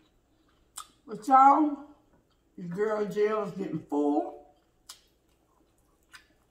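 Lips smack and slurp noodles.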